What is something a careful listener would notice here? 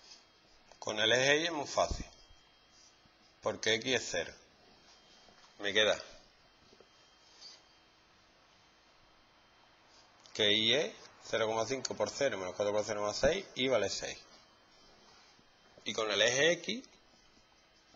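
A man explains calmly in short bursts, close by.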